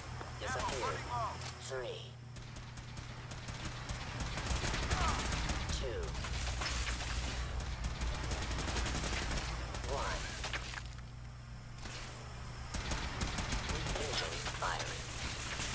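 Energy blasts burst with crackling explosions.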